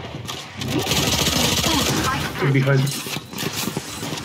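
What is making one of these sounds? A sniper rifle fires a single loud, sharp shot.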